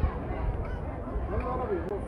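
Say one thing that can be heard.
A crowd of men and women chatters in the distance, outdoors.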